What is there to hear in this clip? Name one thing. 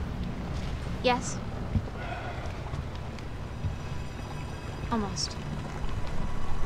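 A young woman speaks quietly and briefly.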